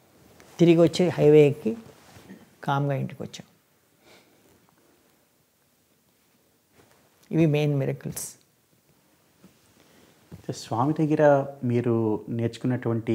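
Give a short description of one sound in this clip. A middle-aged man speaks calmly and expressively into a close microphone, with pauses.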